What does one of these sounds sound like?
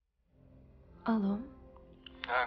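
A young woman talks on a phone.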